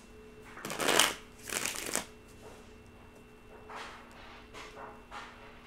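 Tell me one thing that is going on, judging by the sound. Playing cards riffle and slap together as they are shuffled close by.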